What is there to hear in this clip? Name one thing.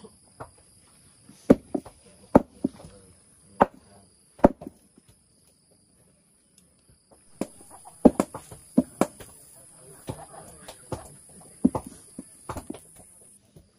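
A stone hammer strikes hard shells on a stone slab with sharp knocks.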